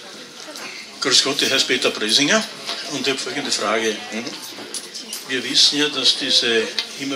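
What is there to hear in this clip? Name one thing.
An older man speaks calmly into a microphone, heard through loudspeakers in a room.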